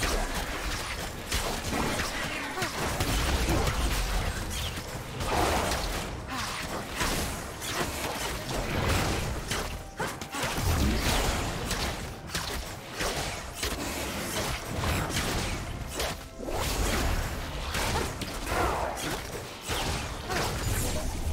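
Spell effects blast and crackle in a busy game battle.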